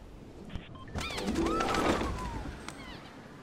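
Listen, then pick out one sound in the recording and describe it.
A glider snaps open with a whoosh.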